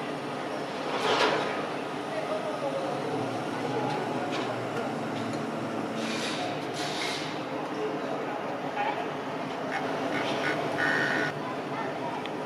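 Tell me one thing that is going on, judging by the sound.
Steel scaffolding parts clank in the distance.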